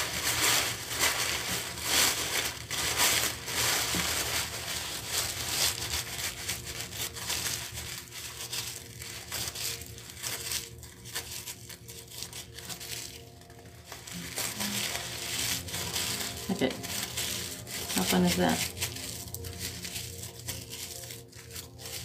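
Soft material rustles and crinkles as hands handle it close by.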